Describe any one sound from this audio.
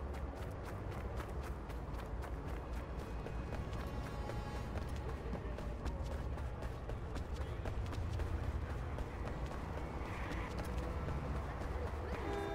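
Running footsteps thud quickly on the ground.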